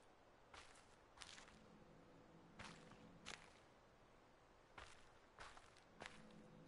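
Footsteps scuff softly on a path.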